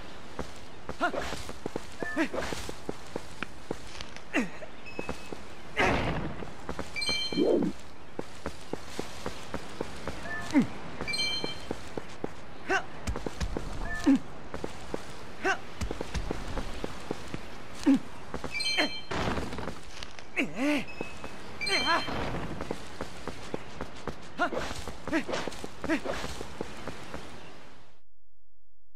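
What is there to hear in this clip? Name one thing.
Rocks crash and shatter on the ground, again and again.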